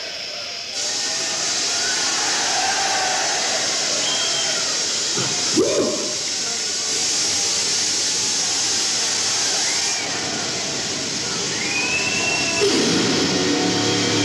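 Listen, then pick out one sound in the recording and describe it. A large crowd cheers and whistles loudly.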